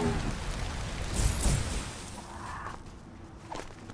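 A heavy van crashes and clatters onto its side.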